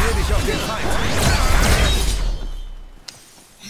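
Metal blades clash and whoosh in a fast fight.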